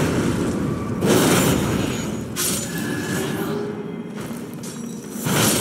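A blade whooshes through the air and strikes hard, several times.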